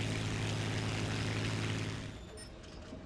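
A propeller plane's engine drones steadily.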